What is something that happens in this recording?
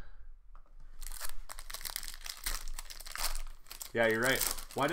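A foil wrapper crinkles and tears as hands rip it open.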